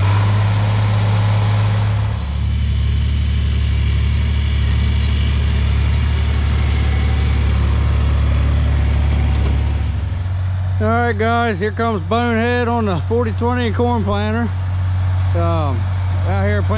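A six-cylinder diesel farm tractor drones as it pulls a planter across a field.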